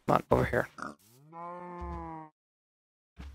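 A cow moos.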